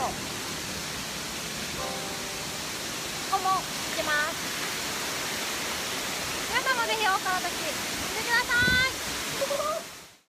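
A waterfall rushes steadily nearby.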